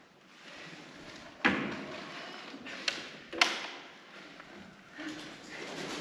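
A wooden pallet creaks and knocks under a foot.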